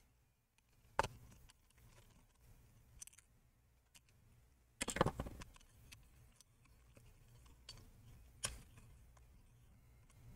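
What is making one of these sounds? Small plastic and metal parts click and clatter as they are handled.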